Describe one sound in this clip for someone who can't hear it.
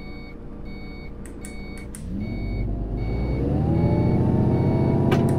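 A turn signal beeps steadily.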